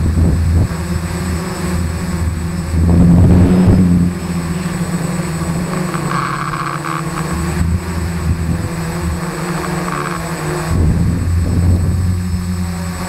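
A drone's propellers buzz steadily close by.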